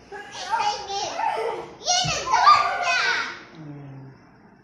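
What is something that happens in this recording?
Young children shriek and squeal playfully close by.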